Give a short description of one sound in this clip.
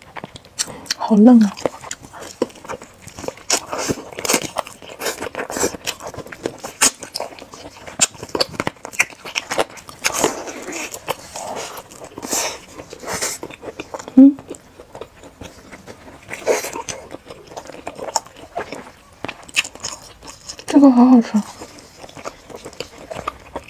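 A young woman chews and smacks her food wetly, close to a microphone.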